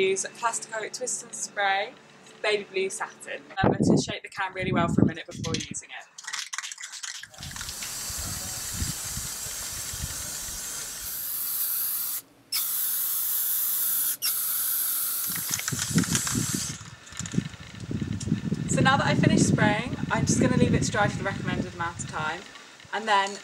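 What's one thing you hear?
A young woman talks calmly to the listener, close by.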